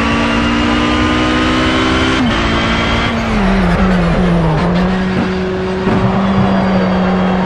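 A race car engine roars loudly at high revs.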